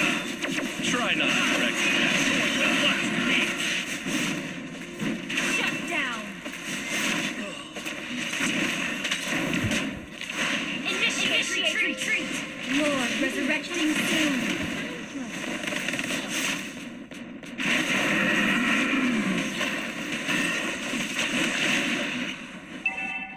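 Fast fighting sound effects from a video game whoosh, clash and burst.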